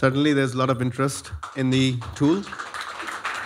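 A man speaks through a microphone in a room.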